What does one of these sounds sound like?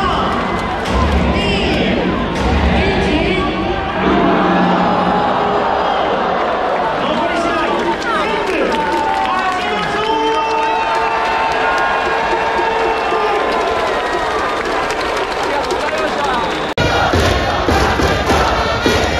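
A large stadium crowd cheers and sings loudly outdoors.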